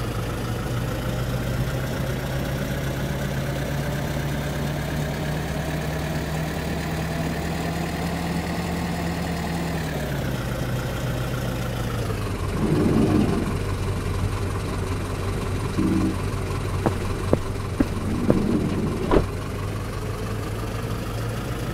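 A bus engine hums as the bus drives along.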